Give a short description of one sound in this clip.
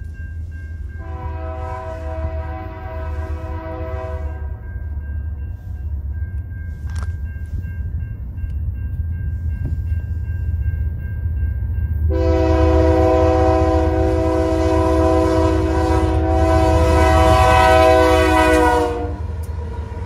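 A train horn blares in long, loud blasts.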